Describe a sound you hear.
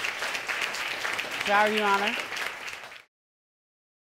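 An audience murmurs and reacts loudly.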